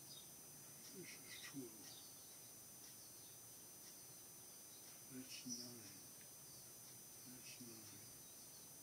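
An elderly man speaks calmly and briefly, close by, with long pauses.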